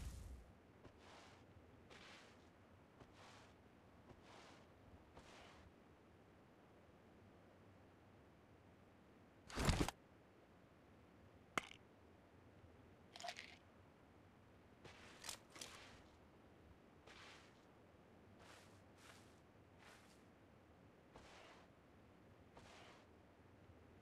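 Footsteps thud steadily on dirt and grass.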